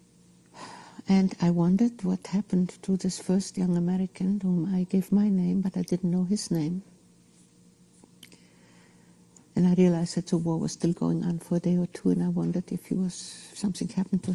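An elderly woman speaks slowly and emotionally, close to a microphone.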